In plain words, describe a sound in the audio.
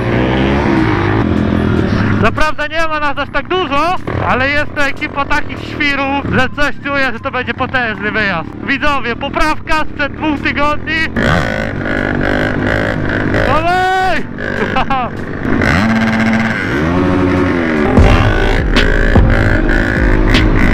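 Other dirt bike engines whine nearby.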